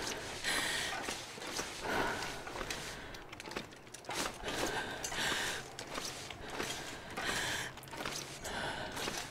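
Footsteps crunch through deep snow at a steady pace.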